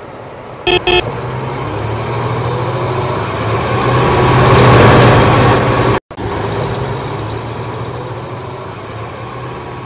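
A bus engine rumbles and revs as the bus pulls away.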